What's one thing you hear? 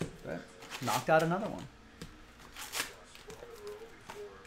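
Cardboard packs rustle and slide out of a box.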